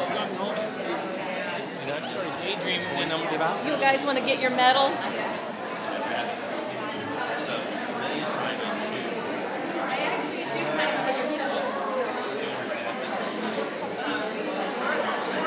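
A crowd of men and women chatter at once in a large room.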